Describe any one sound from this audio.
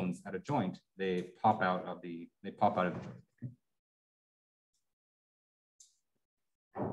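A young man speaks calmly through an online call microphone.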